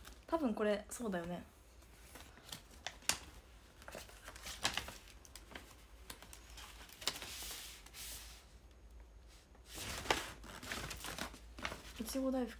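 A young woman speaks softly and close by.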